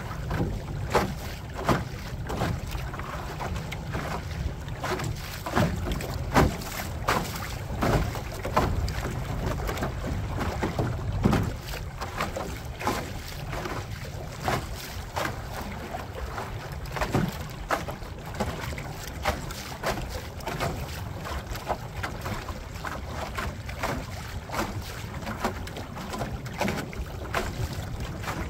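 Waves slap against the hull of a small boat.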